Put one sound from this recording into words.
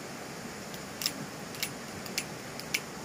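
Small metal parts click together in a man's hands.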